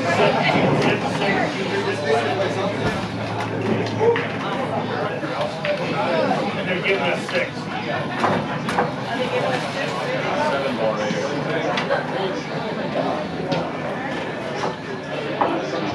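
A crowd of men and women chatter indoors in the background.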